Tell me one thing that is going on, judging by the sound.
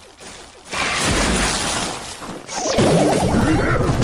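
Game sound effects of a small battle clash and crackle.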